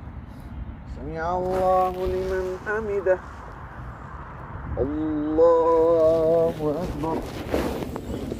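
A man chants a prayer aloud in long, held melodic phrases outdoors.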